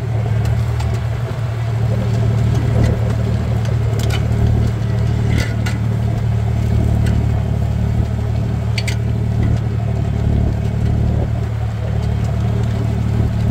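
A tractor engine drones steadily close by.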